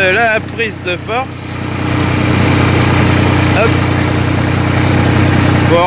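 A small tractor engine idles with a steady, low chugging hum that grows louder.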